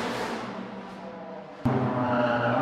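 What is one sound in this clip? A rally car engine rumbles and echoes through a tunnel.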